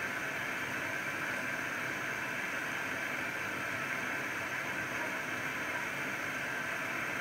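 Water sloshes and splashes inside a washing machine drum.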